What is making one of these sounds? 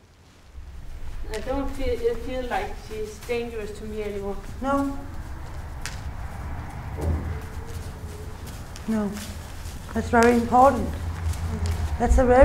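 A young woman speaks calmly and close by.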